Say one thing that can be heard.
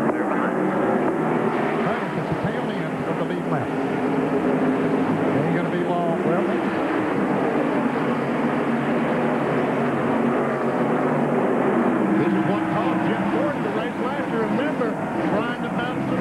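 Many race car engines roar loudly at high speed.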